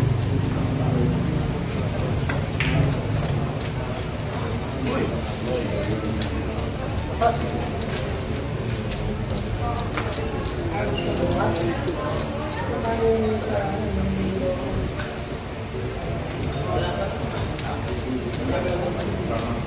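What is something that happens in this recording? A crowd of men and women murmurs and chatters nearby.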